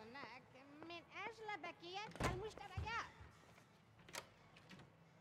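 A door opens and clicks shut.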